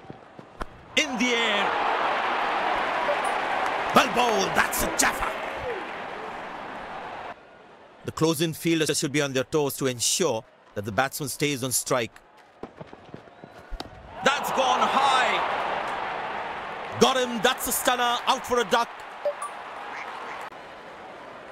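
A crowd cheers and roars in a large stadium.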